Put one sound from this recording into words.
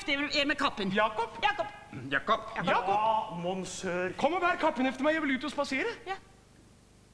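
A man sings loudly on a stage.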